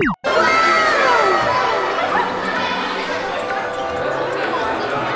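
A crowd of young people chat quietly indoors.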